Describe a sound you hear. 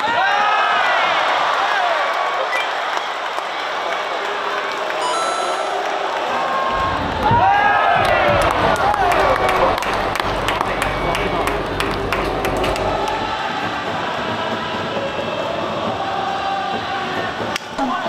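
A large stadium crowd cheers and shouts loudly.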